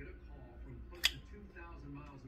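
A folding knife blade snaps open with a sharp click.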